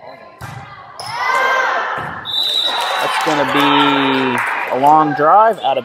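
A crowd cheers and claps in an echoing gym.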